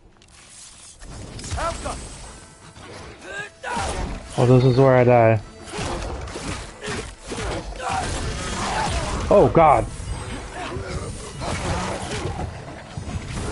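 Blows thud during a fight.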